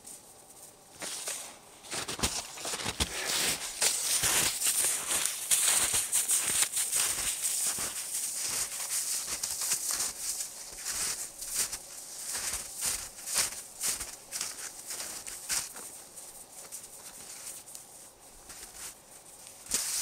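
Snowshoes crunch and squeak on packed snow with each step.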